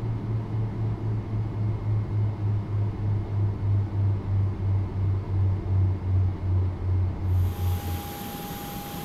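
A jet engine hums with a steady throbbing beat, heard from inside a cabin.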